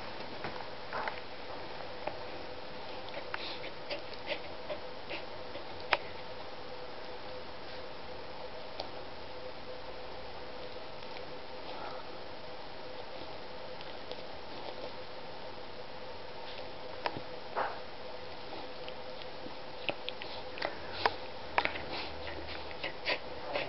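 A dog gives small snorts and snuffles up close.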